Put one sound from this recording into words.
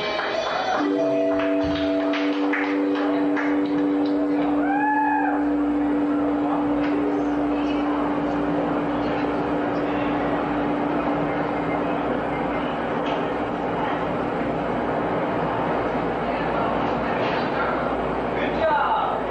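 Electric guitars ring out with sustained notes.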